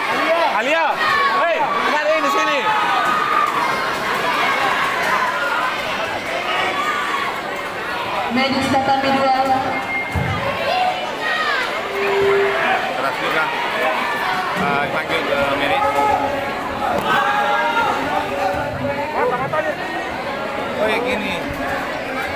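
A large crowd chatters and calls out, echoing in a big hall.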